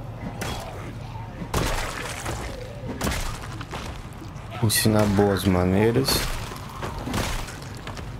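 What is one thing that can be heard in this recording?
A bat thuds hard against bodies in quick blows.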